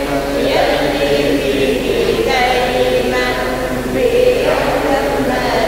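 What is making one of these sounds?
A middle-aged man chants steadily into a microphone.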